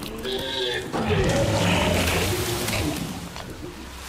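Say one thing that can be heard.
A giant frog croaks loudly.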